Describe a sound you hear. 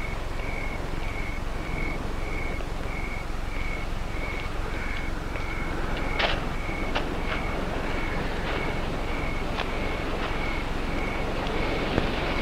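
Footsteps crunch softly on grass.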